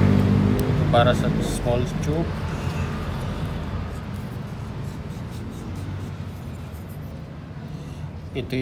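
A metal ring scrapes and clicks against a wooden rod.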